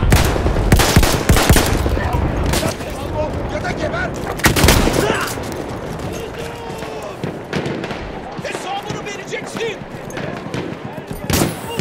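Loud gunshots and blasts boom nearby.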